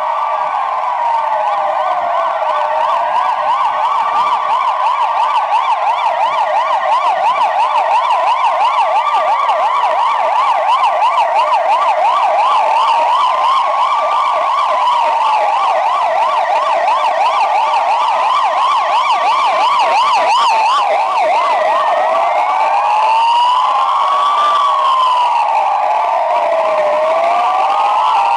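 Several sirens wail together, rising and falling, some fast and some slow.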